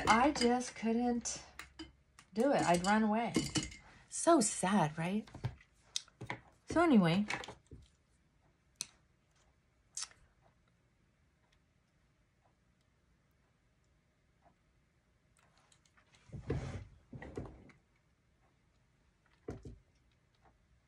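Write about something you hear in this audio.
A middle-aged woman talks calmly close by.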